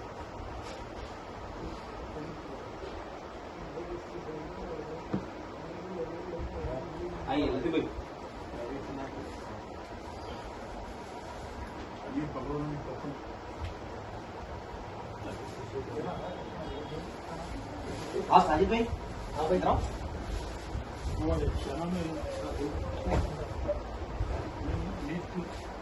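Several men talk and murmur nearby.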